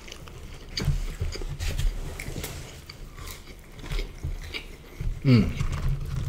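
A man chews food with soft smacking sounds.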